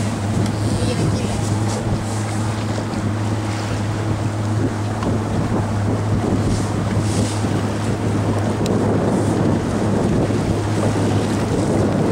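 Water splashes and churns steadily.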